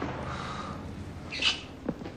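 A man speaks close by.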